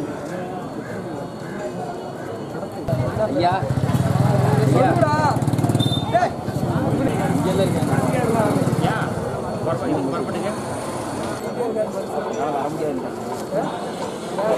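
A crowd of people chatters and calls out nearby, outdoors.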